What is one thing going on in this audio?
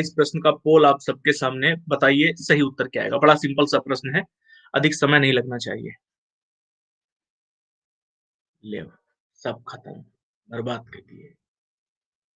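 A man speaks with animation through a microphone, then pauses.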